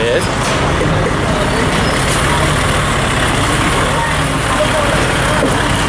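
A lorry engine rumbles steadily nearby.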